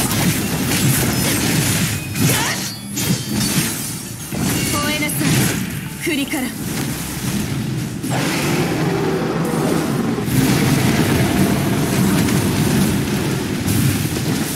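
Electric bolts crackle.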